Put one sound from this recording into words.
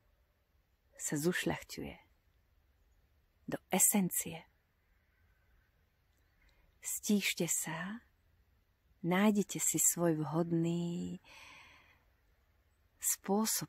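A woman talks calmly and closely, in short phrases with pauses.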